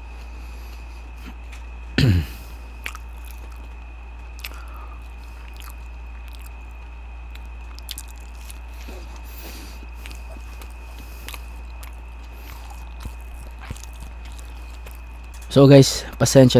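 Crispy food rustles and crackles close to a microphone.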